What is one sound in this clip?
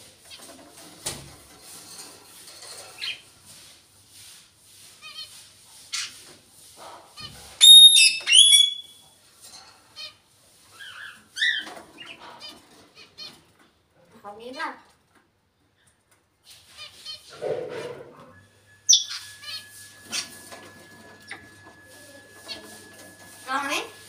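A parrot whistles and chirps close by.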